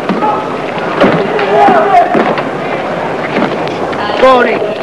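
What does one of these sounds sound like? Several young men shout and chatter excitedly nearby.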